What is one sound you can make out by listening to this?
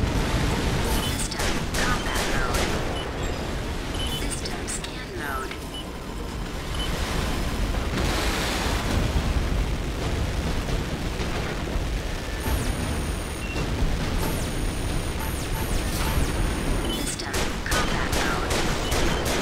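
Gunfire bursts in rapid cracks.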